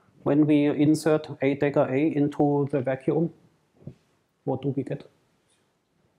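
A middle-aged man lectures calmly through a microphone.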